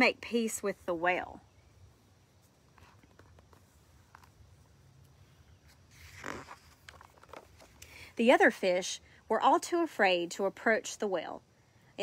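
A woman reads aloud expressively, close by.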